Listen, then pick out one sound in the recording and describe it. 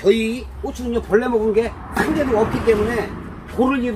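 A plastic chair scrapes and bumps on the ground.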